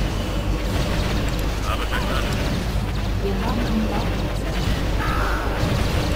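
Explosions go off in a video game battle.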